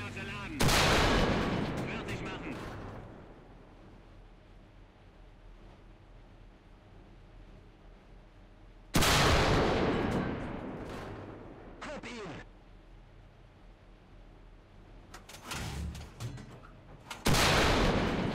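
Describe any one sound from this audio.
A tank cannon fires with a loud boom that rumbles away.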